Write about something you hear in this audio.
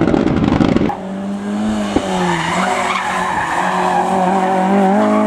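A second rally car engine screams loudly as the car passes close by.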